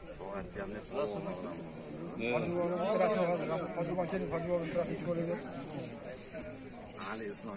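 An elderly man speaks warmly and at length close by, outdoors.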